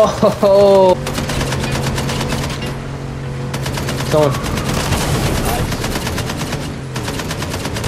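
A car engine drones in a video game.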